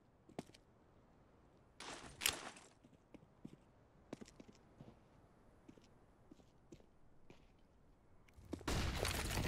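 Footsteps tap softly on hard ground.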